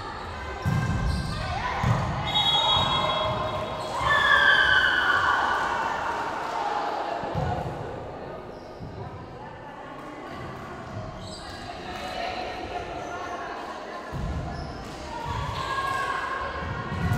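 Girls on court shout and call out to each other.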